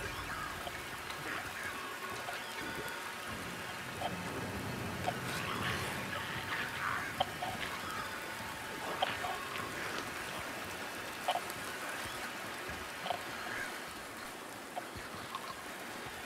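Footsteps splash on wet ground.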